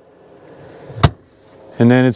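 A plastic lid thumps shut.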